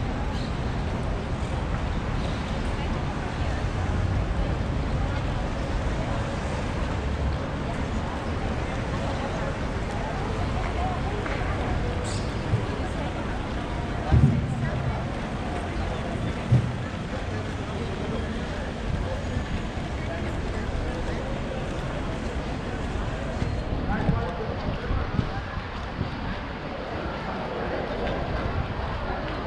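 Footsteps of many people patter on a paved street.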